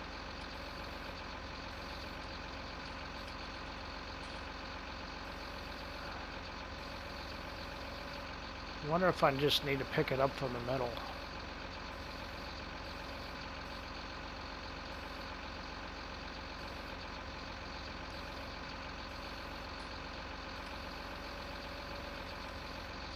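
A machine engine hums steadily.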